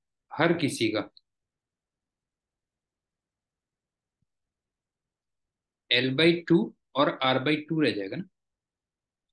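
A middle-aged man speaks calmly through a microphone in short phrases.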